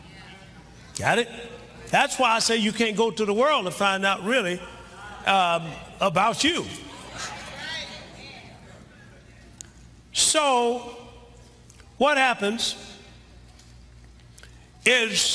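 A middle-aged man preaches with animation through a microphone, in bursts separated by pauses.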